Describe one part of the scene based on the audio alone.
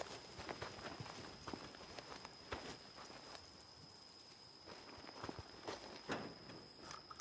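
Footsteps crunch softly through dry grass.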